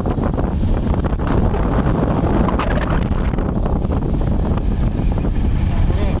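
Strong wind blows outdoors and rumbles against the microphone.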